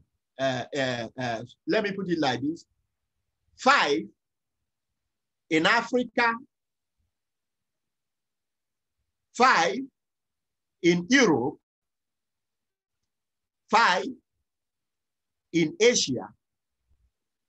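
A man speaks calmly in short bursts with pauses, heard over an online call.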